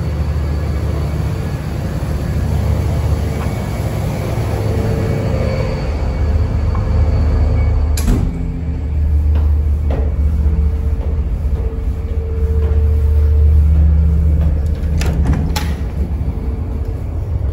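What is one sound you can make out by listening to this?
A ship's engine rumbles low and steady.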